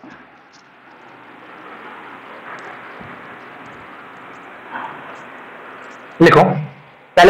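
A cloth rubs and wipes across a chalkboard.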